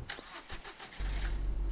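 A car engine starts and hums steadily.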